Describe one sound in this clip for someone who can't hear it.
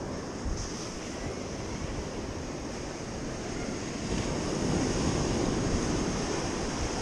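Wind rumbles across the beach.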